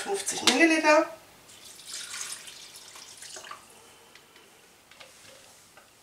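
Water pours from a jug into a pot.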